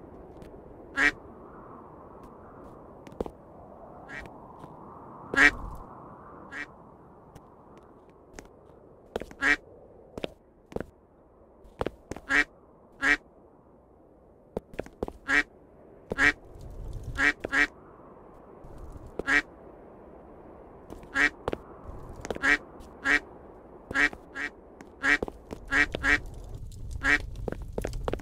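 A game character's short jump sound pops again and again.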